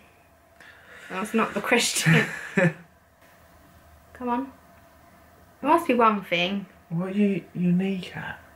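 A young woman laughs close by.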